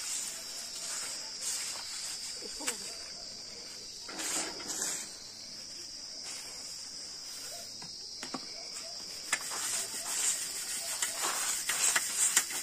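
Finger millet grain rattles as it is shaken in a metal sieve.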